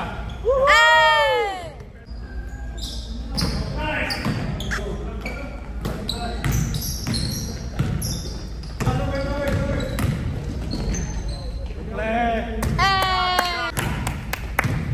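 Sneakers squeak sharply on a hard court in an echoing hall.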